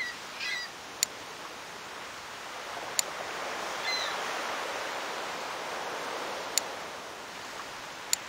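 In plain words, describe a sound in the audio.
Gentle waves wash steadily.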